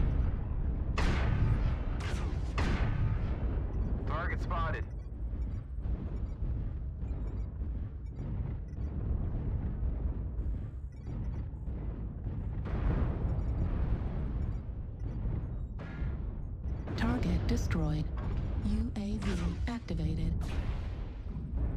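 A laser weapon fires with a sharp buzzing blast.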